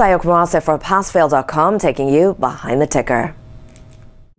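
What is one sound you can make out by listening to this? A young woman speaks clearly and brightly into a microphone.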